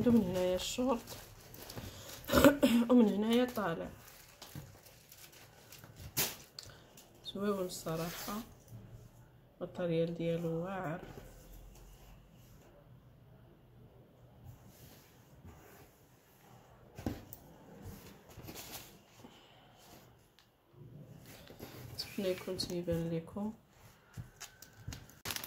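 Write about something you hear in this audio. Fabric rustles softly as hands smooth and fold it.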